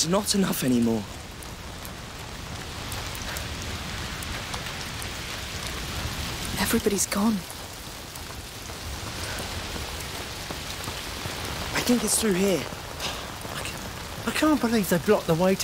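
Rain falls steadily all around.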